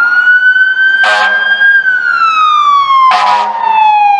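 A fire engine's air horn blasts twice.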